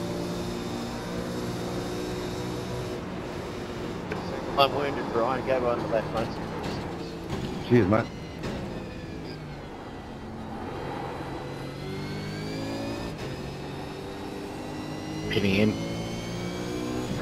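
A racing car engine roars and shifts through its gears.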